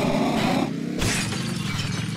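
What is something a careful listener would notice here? Ice shatters with a sharp crash.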